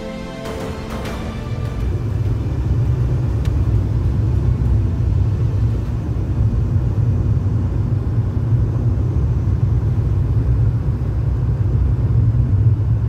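Tyres rumble on a wet, slushy road.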